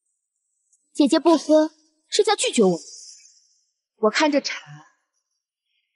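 A young woman speaks coldly and calmly.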